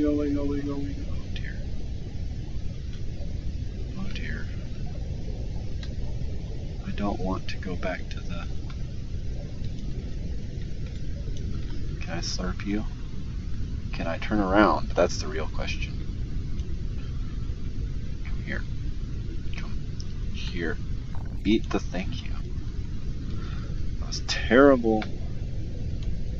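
A low, steady underwater rumble runs throughout.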